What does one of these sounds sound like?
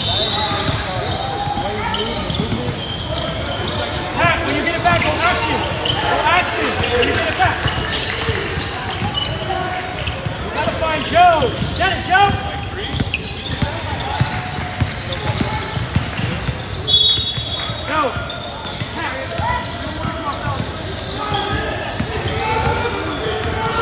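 Children and adults chatter and call out in the echoing hall.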